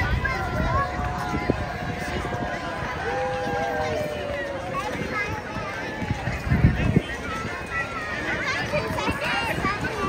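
Horse hooves clop on pavement.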